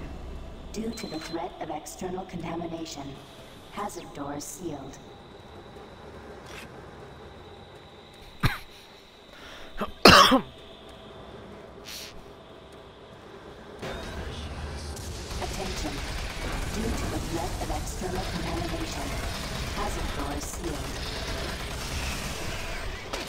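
A woman talks into a close microphone.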